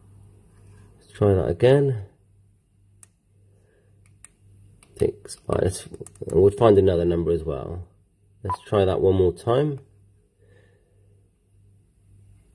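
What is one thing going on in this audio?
Buttons on a handheld radio click softly as they are pressed.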